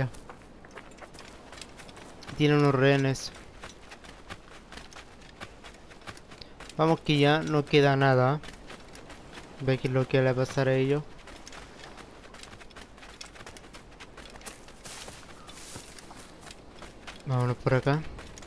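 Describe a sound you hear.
Footsteps thud quickly on sand and soft ground.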